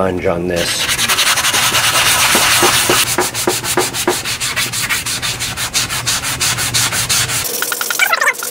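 A stiff brush scrubs rapidly against metal.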